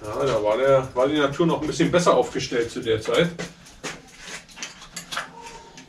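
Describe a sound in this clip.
A bicycle rattles as it is handled.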